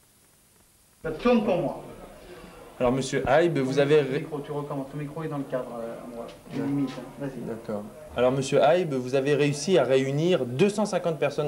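A middle-aged man speaks calmly and close to the microphone.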